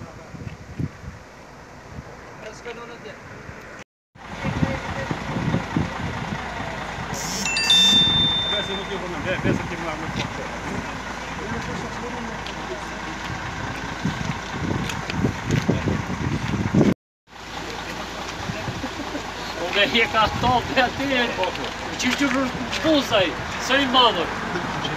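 A group of men talk nearby outdoors.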